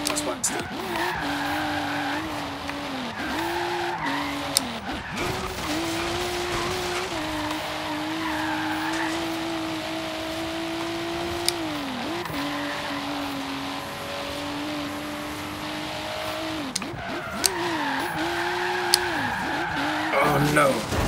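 Tyres squeal as a car skids through bends.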